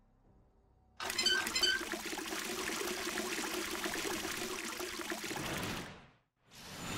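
Water runs from a tap and splashes into a canteen.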